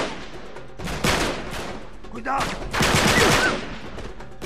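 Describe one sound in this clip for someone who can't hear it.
A gun fires sharp shots nearby.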